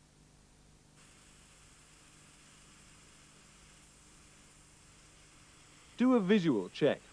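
A sprayer's fan hums faintly and steadily.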